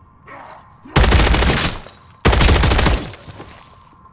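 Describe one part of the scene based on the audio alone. A rifle fires rapid bursts of gunfire.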